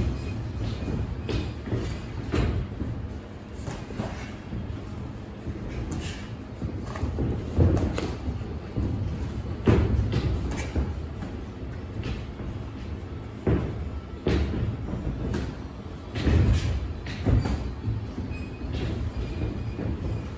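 Boxers' shoes scuff and shuffle on a canvas ring floor.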